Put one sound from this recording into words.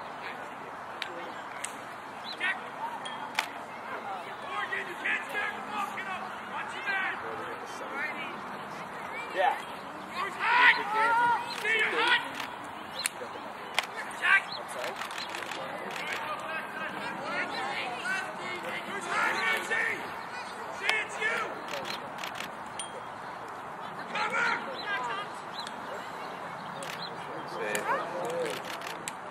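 Young lacrosse players shout to each other across an open field.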